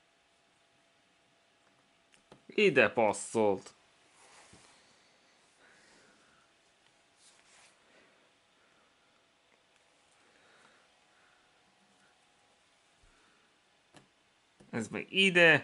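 Jigsaw puzzle pieces rustle and click softly under a hand.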